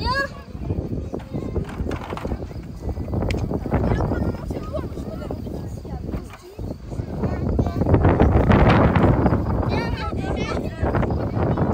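A young girl talks excitedly nearby.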